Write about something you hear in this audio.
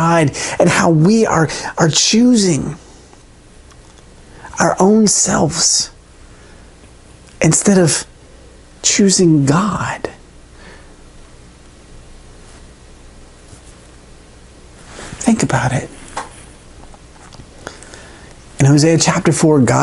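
A man speaks calmly and expressively into a close microphone, with pauses.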